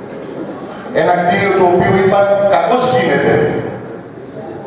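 An older man speaks with emphasis through a microphone in a room with some echo.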